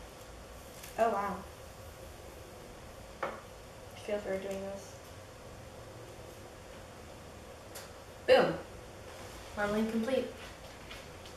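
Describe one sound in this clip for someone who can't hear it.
A young girl speaks calmly and close by.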